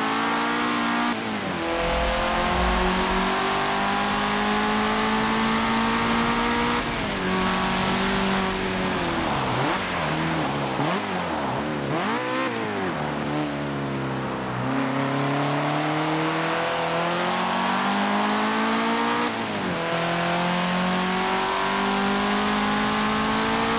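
A car engine roars at high revs, rising in pitch and dropping sharply with each gear shift.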